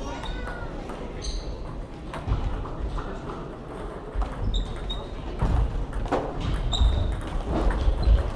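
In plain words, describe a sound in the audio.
Footsteps squeak on a wooden floor.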